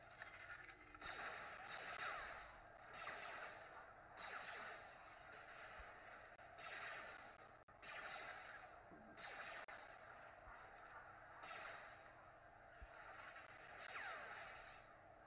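Blaster shots and bursts of energy fire in quick volleys.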